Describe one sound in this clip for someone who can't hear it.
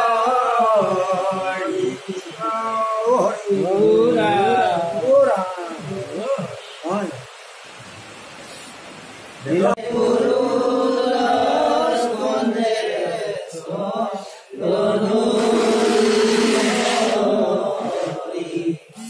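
Elderly men chant together in a steady sing-song voice, close by.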